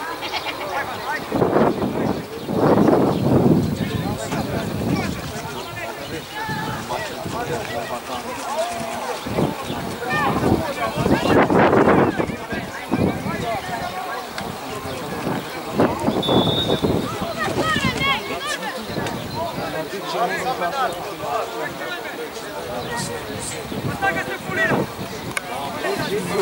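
Young players shout to each other across an open outdoor pitch.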